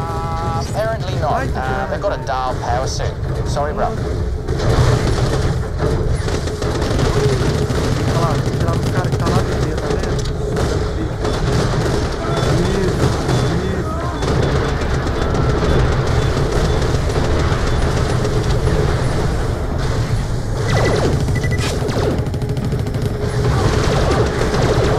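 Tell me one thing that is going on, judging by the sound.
Rapid gunfire rattles and blasts throughout.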